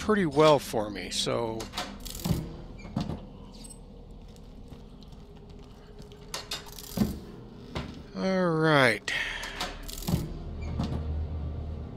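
A heavy chest lid clunks open.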